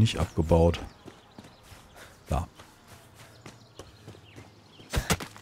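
Footsteps rustle softly through grass.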